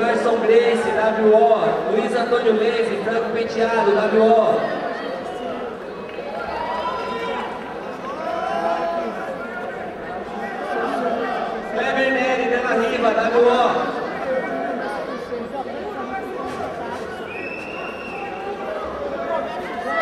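Men shout and call out loudly in a large echoing hall.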